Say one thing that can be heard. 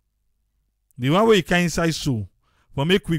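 An elderly man speaks loudly into a microphone.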